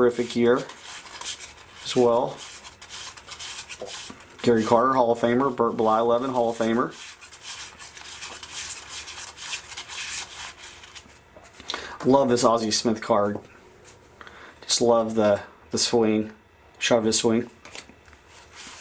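Trading cards slide and flick against each other as they are shuffled through by hand.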